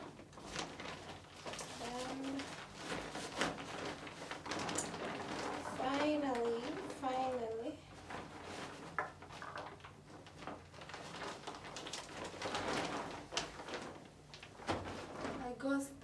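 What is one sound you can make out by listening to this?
A paper bag rustles and crinkles as things are taken out of it.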